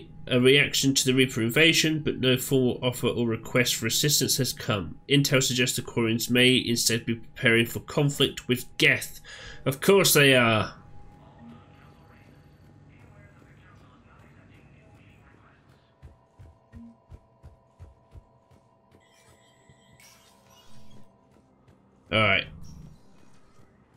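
A man reads aloud with animation, close to a headset microphone.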